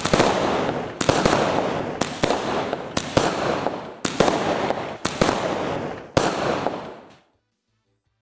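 Crackling fireworks sizzle and pop after each burst.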